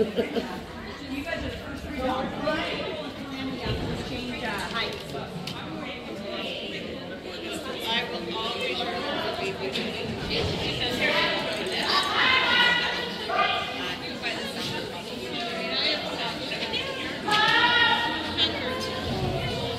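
A woman talks and calls out encouragingly in a large echoing hall.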